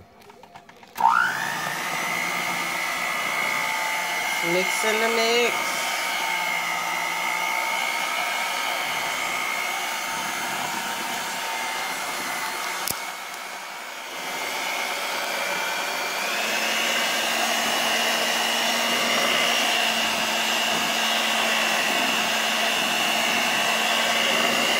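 An electric mixer whirs steadily.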